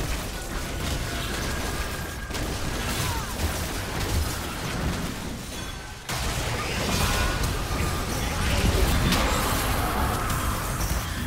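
Game spell effects whoosh and crackle in a battle.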